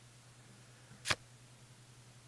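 A short click sounds as a playing card is picked up.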